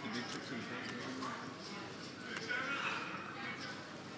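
Poker chips click together softly.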